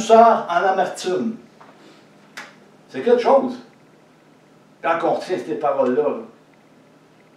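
A middle-aged man speaks slowly and deliberately in short phrases, close by in a small room.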